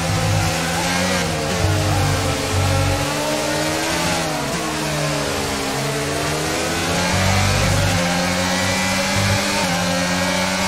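A racing car engine screams at high revs, rising and falling as the gears shift.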